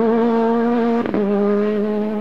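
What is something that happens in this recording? A rally car's engine cuts out briefly as the gear shifts.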